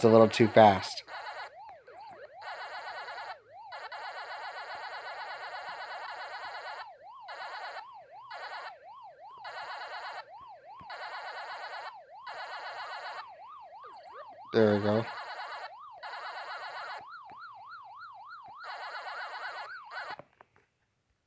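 An arcade game's warbling siren tone rises and falls steadily.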